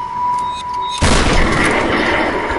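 A shotgun fires with a loud blast.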